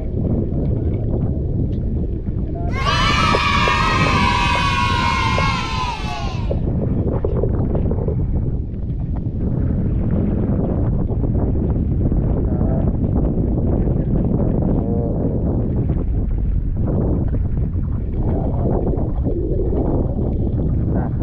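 Wind blows hard across the microphone outdoors on open sea.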